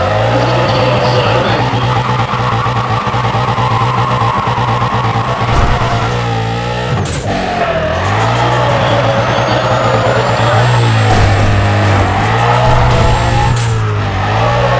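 A car engine revs high and roars steadily.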